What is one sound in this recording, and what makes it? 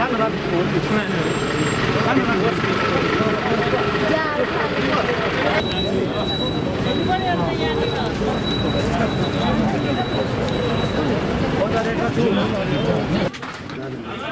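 A crowd of people chatters loudly close by.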